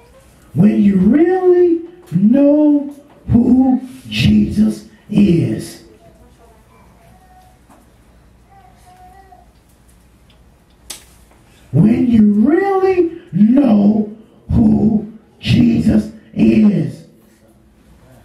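A man speaks loudly and with feeling into a microphone, in short phrases with pauses.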